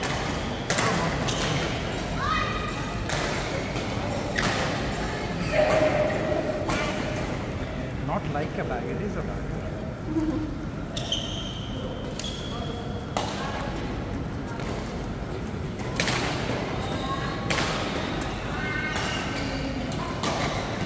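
Shoes squeak on a sports floor.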